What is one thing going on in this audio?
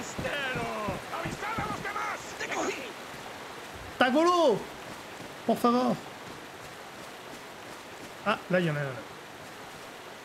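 A man talks with animation through a close microphone.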